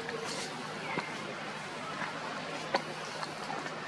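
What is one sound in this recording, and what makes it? A monkey chews food.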